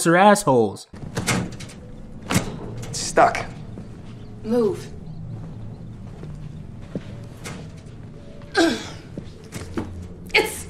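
A hand pounds on a door.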